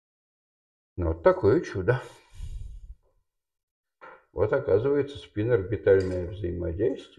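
A man lectures calmly nearby.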